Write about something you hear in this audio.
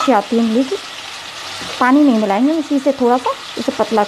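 A metal spoon scrapes and stirs in a pot of stew.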